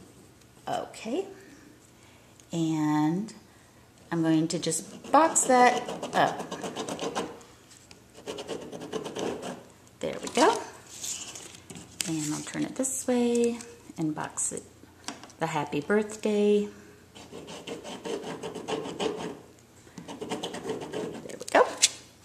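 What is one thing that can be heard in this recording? A marker pen scratches lightly across paper.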